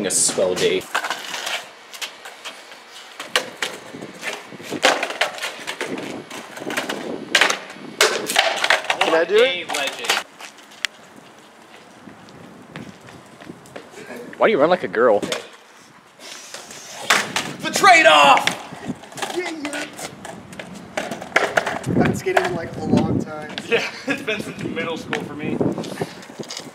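Skateboard wheels and deck clack and scrape on concrete.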